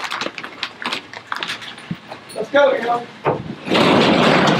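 Packages knock and thump as a man loads a delivery truck.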